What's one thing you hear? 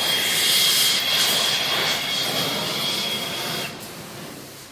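A gas torch roars steadily.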